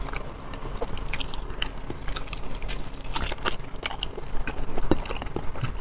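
Crispy chicken skin crackles as a man bites into it.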